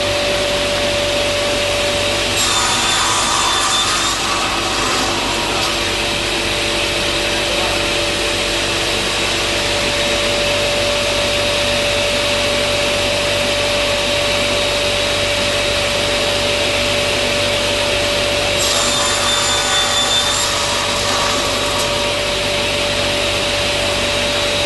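A saw motor hums steadily.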